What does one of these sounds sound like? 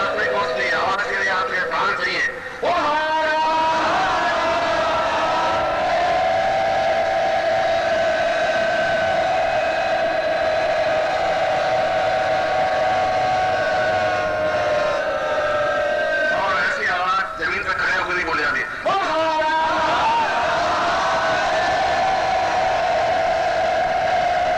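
A large crowd chants together in long, drawn-out tones outdoors.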